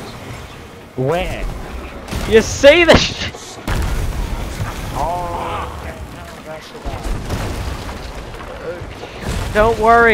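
Cannons fire with heavy booms.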